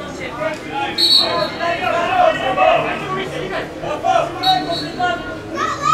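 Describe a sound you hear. A referee's whistle blows in short sharp blasts outdoors.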